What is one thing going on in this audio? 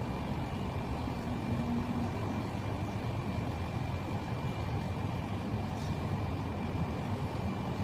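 Electric hair clippers buzz close by.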